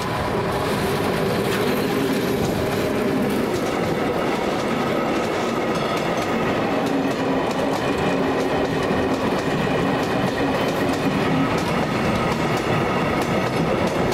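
Freight wagons clatter and rumble over the rails close by.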